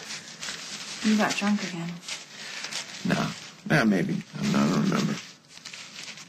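A young man speaks quietly and earnestly, close by.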